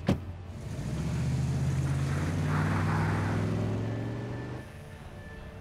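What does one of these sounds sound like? A car engine roars as a vehicle speeds past on a wet road.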